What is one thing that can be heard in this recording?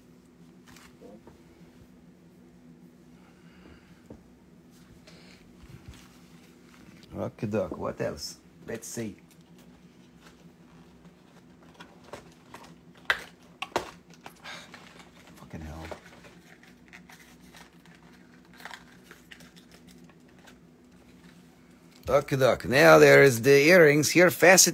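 A plastic bag crinkles as it is handled.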